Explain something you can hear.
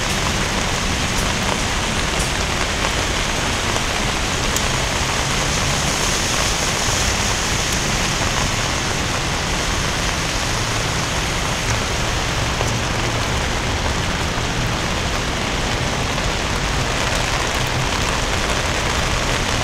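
Rain pours steadily outdoors.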